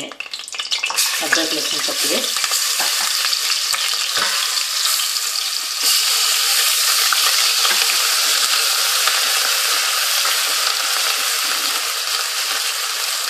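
Food sizzles and crackles loudly in hot oil.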